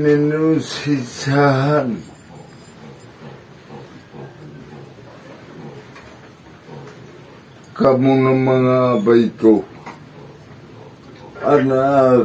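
A man chants in a long, drawn-out sung voice close by, pausing between phrases.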